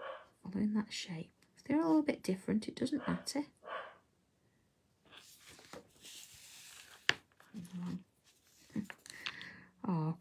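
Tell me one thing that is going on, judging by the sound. A marker pen scratches softly on paper.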